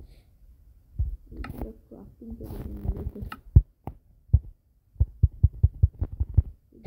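Soft clicks tap repeatedly.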